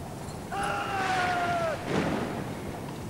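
A man shouts a long drill command across a wide open space.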